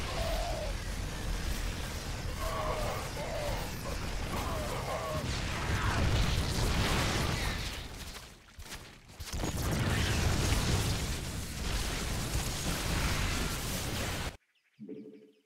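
Rapid gunfire rattles in a noisy battle.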